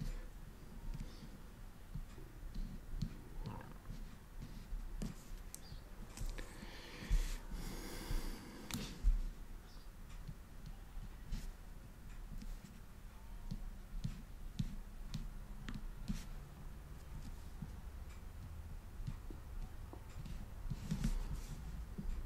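A small tool scrapes and taps softly on a plastic surface.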